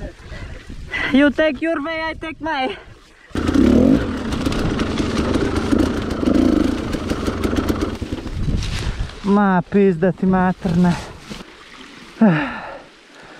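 A dirt bike engine revs hard in sharp bursts close by.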